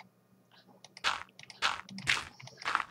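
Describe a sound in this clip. A block thuds softly into place.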